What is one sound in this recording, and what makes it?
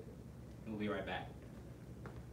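A man speaks a few words briefly and calmly nearby.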